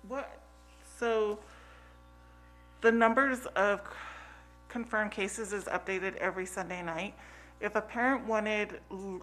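A woman speaks calmly through a microphone in a room.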